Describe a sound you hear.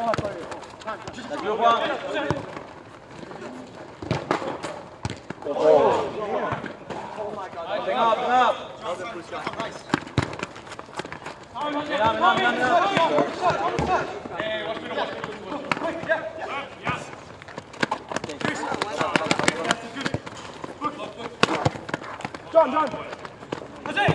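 Young men shout and call to each other outdoors.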